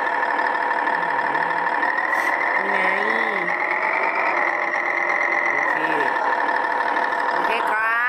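A truck engine drones steadily at low speed.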